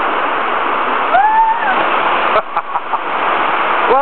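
A person splashes into a deep pool.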